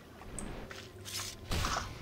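A magic spell bursts with a whoosh.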